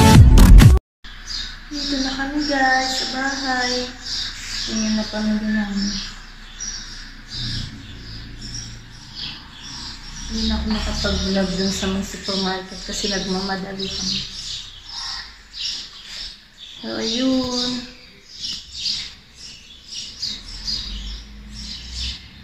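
A young woman talks calmly and close to the microphone.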